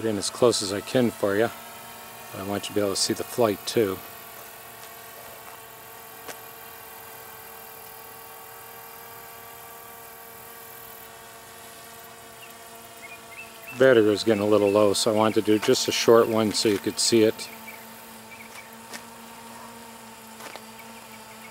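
A quadcopter drone's rotors whir as it flies overhead.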